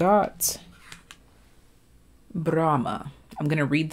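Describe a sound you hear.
A card rustles as it is picked up.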